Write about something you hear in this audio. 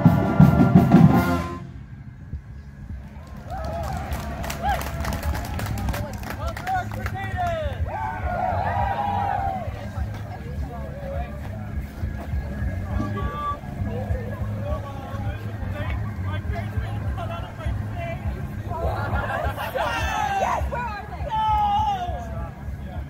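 Drums beat a steady marching rhythm.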